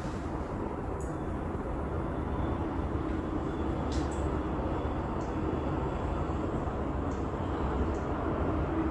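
Soft menu clicks sound from a television as options change.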